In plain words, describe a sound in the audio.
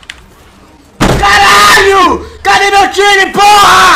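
A young woman screams loudly and close to a microphone.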